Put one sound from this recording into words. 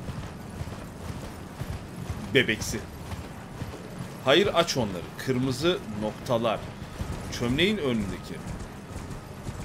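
Horse hooves thud steadily on dirt.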